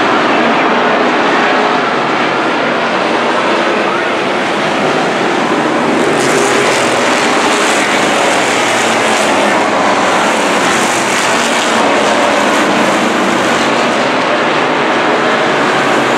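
Racing car engines roar loudly as cars speed past.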